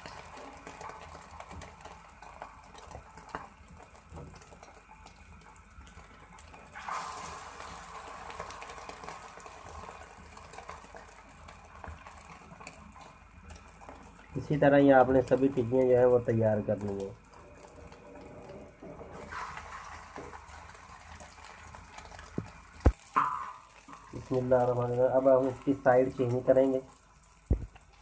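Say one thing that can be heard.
Batter sizzles softly on a hot griddle.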